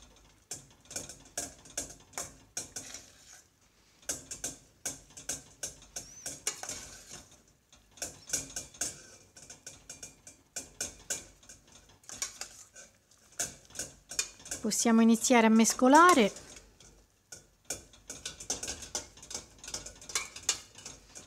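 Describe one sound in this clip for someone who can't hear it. A metal spoon scrapes and clinks against a small metal pot.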